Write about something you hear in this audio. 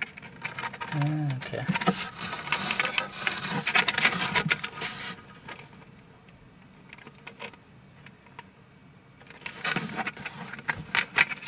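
Hard plastic clicks and rubs close by as a hand handles it.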